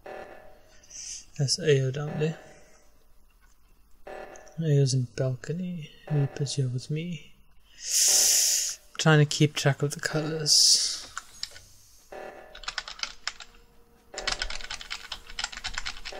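An alarm blares in a repeating pulse.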